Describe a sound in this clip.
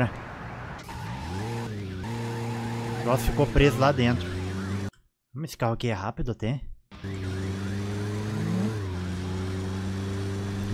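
A car engine hums and revs as the car drives.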